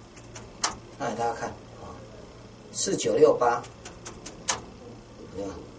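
A middle-aged man speaks calmly and closely into a microphone, in short phrases.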